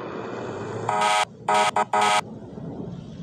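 A fire engine's air horn blasts in short bursts.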